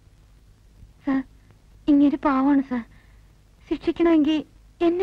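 A woman speaks with emotion nearby.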